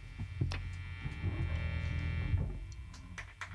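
An electric guitar plays a sustained chord through an amplifier.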